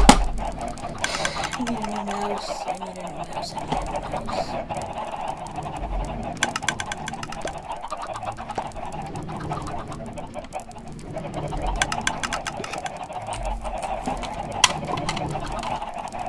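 Chickens cluck.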